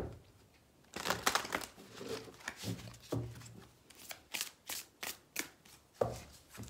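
Cards flick and slap softly as they are shuffled by hand.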